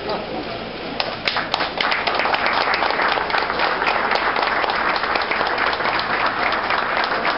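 A small group of people applauds loudly and steadily.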